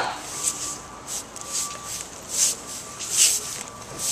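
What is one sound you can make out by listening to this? A broom scrapes along the pavement.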